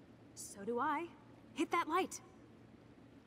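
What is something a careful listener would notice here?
A young woman calls out loudly and excitedly, close by.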